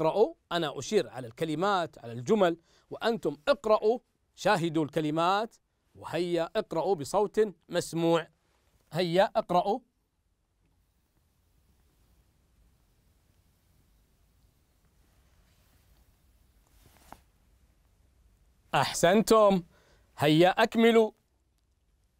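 A man reads out calmly and clearly into a microphone.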